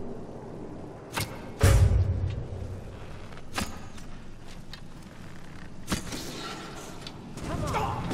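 A bowstring twangs as an arrow flies.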